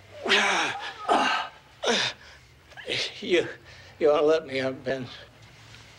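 A man on the floor groans and gasps.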